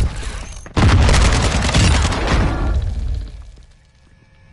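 Gunfire rattles loudly in a burst.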